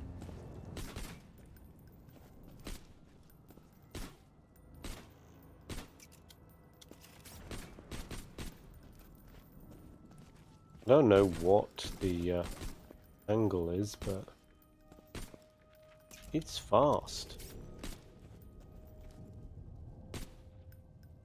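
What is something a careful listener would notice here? A gun fires in sharp single shots.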